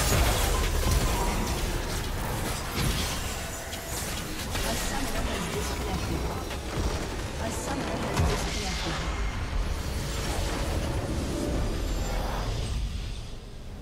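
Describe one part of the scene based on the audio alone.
Magical blasts and explosions crackle and boom in a fast, chaotic clash.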